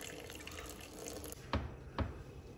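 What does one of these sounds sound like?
Thick liquid pours into a glass dish.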